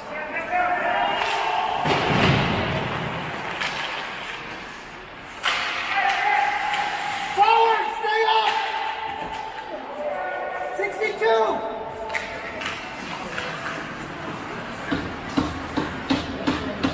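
Ice skates scrape and carve across ice in a large echoing rink.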